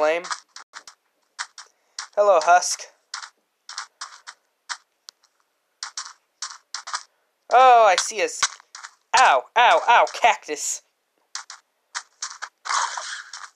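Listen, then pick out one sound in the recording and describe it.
Footsteps crunch on sand in short, quick steps.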